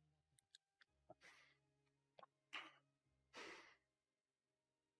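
A young man laughs briefly.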